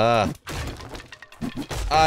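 A pickaxe strikes a zombie.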